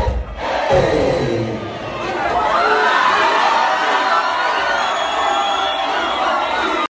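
A large crowd screams and cheers loudly nearby.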